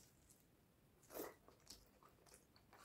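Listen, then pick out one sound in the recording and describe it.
A man chews food loudly with his mouth close to a microphone.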